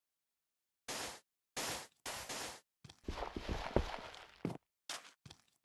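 Sand blocks are placed with soft crunching thuds.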